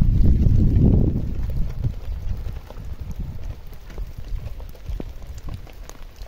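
A plastic sheet rustles and crackles as it is handled.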